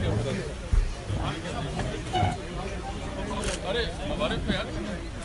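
Several men chatter and talk over one another in a crowd.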